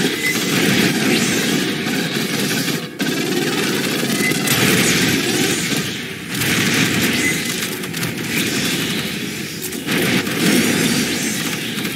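A gun fires rapid bursts.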